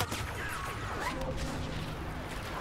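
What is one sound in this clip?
An explosion bursts with a loud crackling roar.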